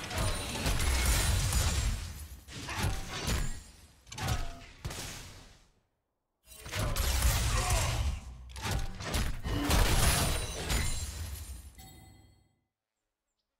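Game spell effects and attacks crash and whoosh in bursts.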